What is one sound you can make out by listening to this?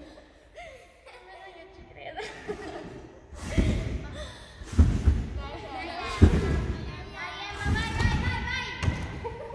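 Young girls chatter and cheer nearby.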